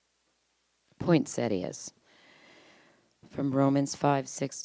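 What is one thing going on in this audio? A woman speaks calmly into a microphone, reading out.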